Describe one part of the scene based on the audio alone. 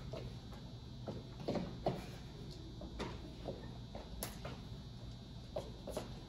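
Shoes scuff and tap on a wooden floor in a large echoing room.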